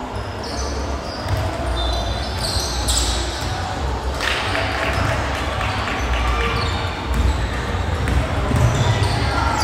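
A basketball bounces with dull thumps as it is dribbled.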